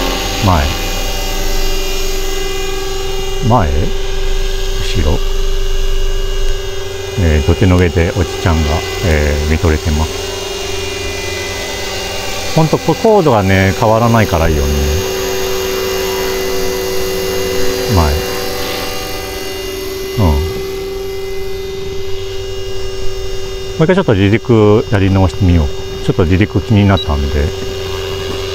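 A model helicopter's rotor and motor whine steadily nearby.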